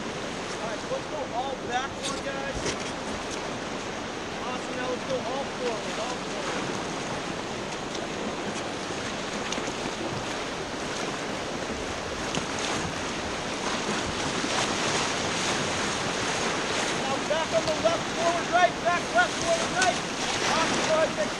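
Young men and women in a raft shout and cheer excitedly.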